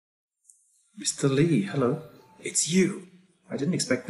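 A young man speaks with surprise, close to a microphone.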